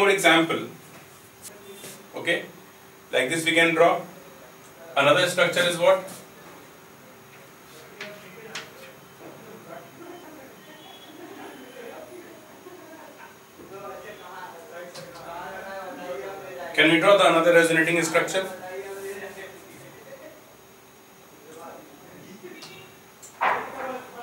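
A young man speaks in bursts, explaining clearly.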